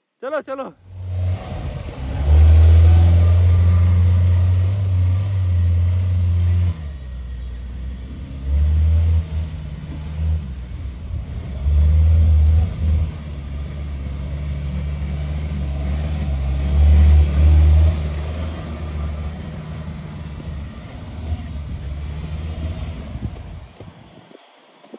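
An engine rumbles and revs as a vehicle drives through soft sand.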